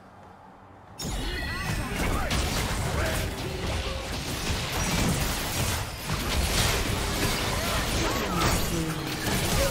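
Magic blasts and clashing bursts crackle in a fast fight.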